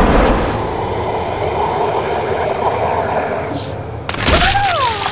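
Magical energy crackles and hums steadily.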